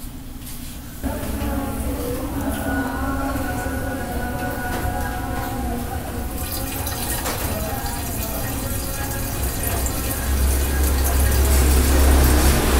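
Liquid gurgles as it pours from a bottle into a narrow opening.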